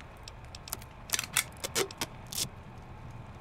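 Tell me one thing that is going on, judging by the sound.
Menu selections click softly, one after another.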